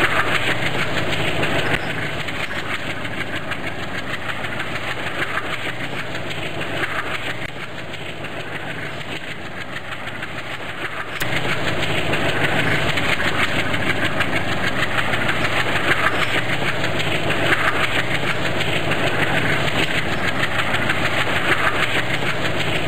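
A train rumbles steadily along the tracks with a rhythmic clatter of wheels.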